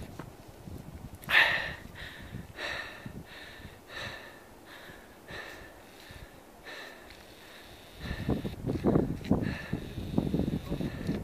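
Boots and hands scrape on rough rock as a climber scrambles up.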